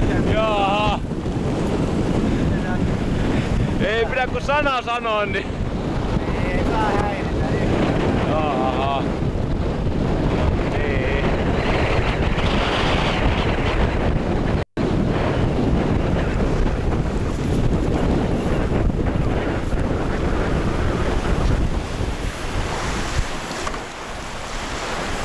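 Waves splash and rush against a sailing boat's hull.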